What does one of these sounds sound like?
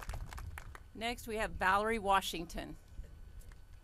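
A woman speaks firmly into a microphone over loudspeakers.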